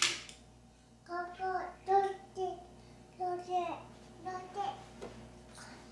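A small girl talks in a high, babbling voice close by.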